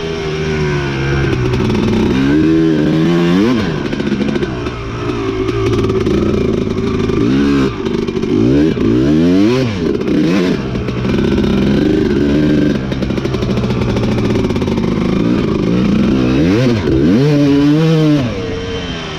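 A dirt bike engine roars close by, revving up and down as it shifts through gears.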